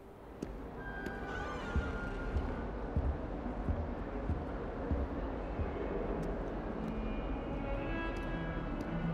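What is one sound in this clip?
Footsteps echo in a large hall.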